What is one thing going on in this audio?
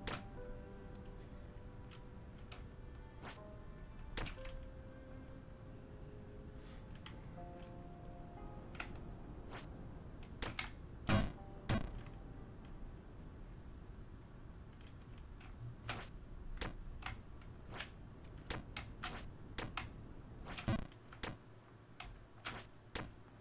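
Short game sound effects click and blip as a character jumps and moves.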